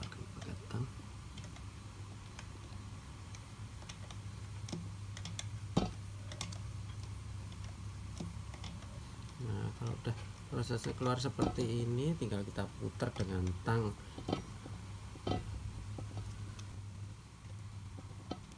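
Pliers click and scrape against metal.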